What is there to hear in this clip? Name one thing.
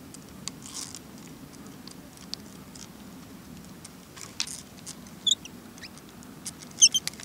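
Water ripples and laps softly as a small animal swims.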